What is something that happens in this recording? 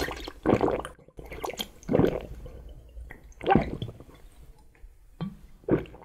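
A man gulps and swallows.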